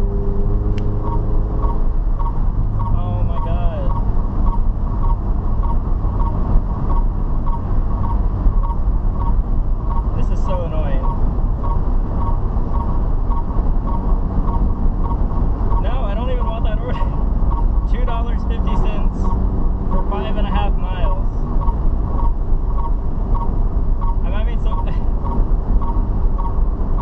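A car's indicator ticks steadily.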